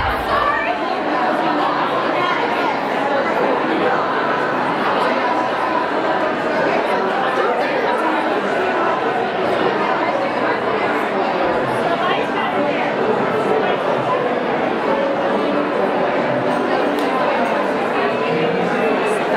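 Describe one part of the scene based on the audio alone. A crowd of women chatters all around.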